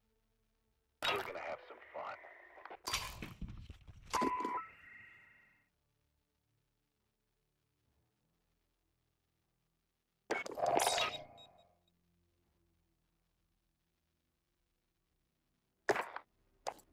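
Menu interface sounds whoosh and chime in short bursts as menus change.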